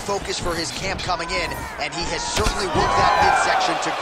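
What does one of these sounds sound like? A kick lands with a dull thud.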